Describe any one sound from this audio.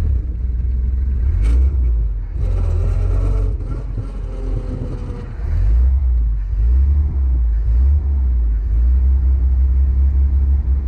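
The straight-six engine of a vintage open car runs while driving along.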